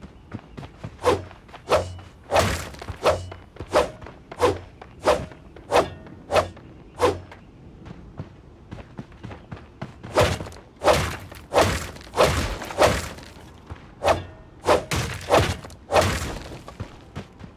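A sword swooshes and strikes a bush again and again.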